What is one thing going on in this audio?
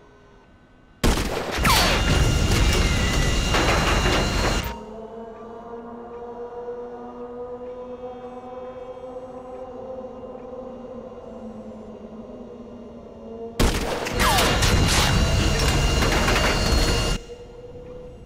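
A jet engine roars loudly close by.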